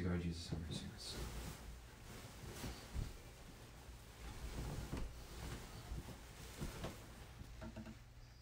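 Heavy fabric rustles close by.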